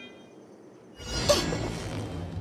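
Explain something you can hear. A fishing line whips out through the air.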